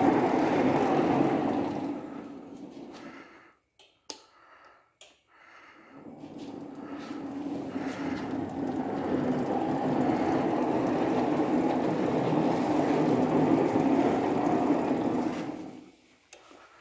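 A small battery-powered cart rumbles along on its wheels.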